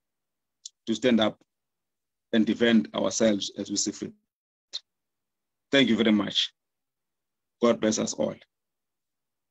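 A middle-aged man speaks calmly in short bursts over an online call.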